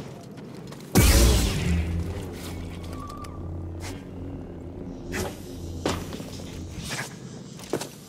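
A lightsaber ignites with a burst and hums steadily.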